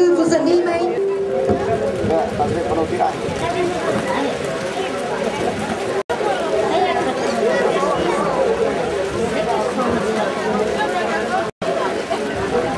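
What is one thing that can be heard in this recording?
A crowd chatters and murmurs nearby.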